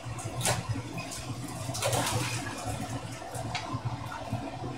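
Dishes clatter in a pot.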